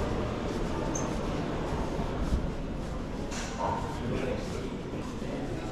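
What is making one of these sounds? A crowd murmurs quietly in a large, open hall.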